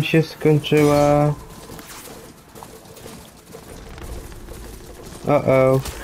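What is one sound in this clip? Metal hooves clatter at a gallop on a dirt path.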